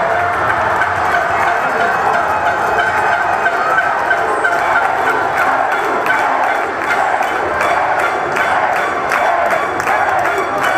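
A large crowd cheers and chants in a large echoing hall.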